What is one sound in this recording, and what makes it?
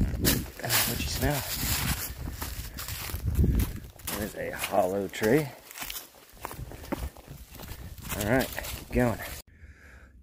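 A dog's paws rustle through dry leaves.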